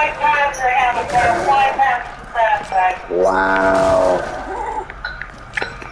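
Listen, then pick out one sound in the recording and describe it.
Wooden crates smash and splinter apart.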